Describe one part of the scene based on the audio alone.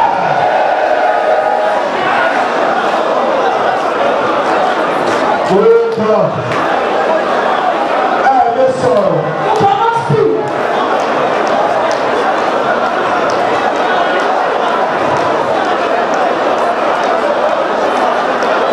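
A crowd of women sings and chants together in a large echoing hall.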